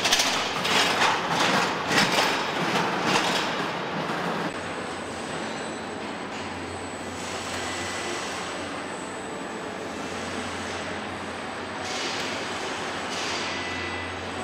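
Machinery hums and clatters steadily in a large echoing hall.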